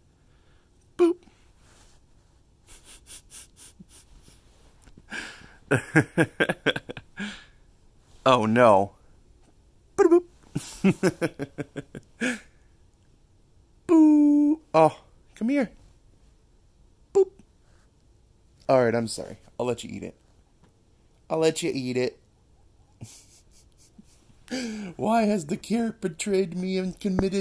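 A guinea pig squeals and chirps in short high bursts, close by.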